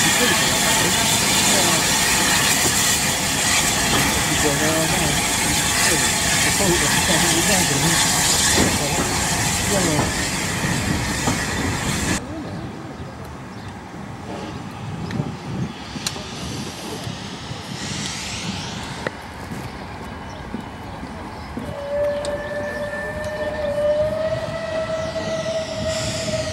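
Train carriages rattle over the rails.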